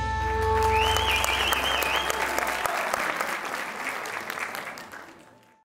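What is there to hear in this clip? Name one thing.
An audience claps and applauds in a large hall, then fades.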